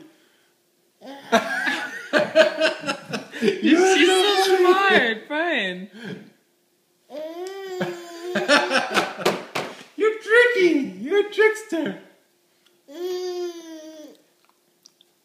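A baby babbles and squeals.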